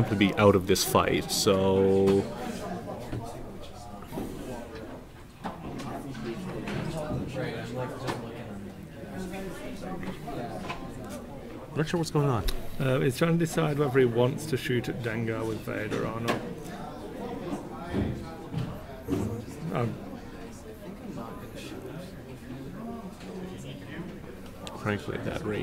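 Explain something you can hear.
A second young man answers calmly close by.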